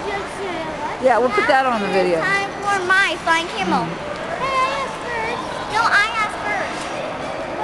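Children shout and squeal in a large echoing hall.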